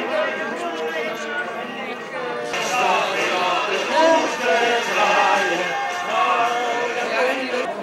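An elderly woman talks cheerfully close by.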